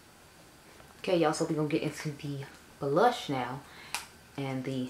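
A young woman speaks calmly and close up.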